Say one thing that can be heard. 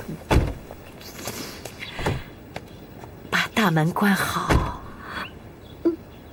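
An elderly woman speaks firmly from inside a car.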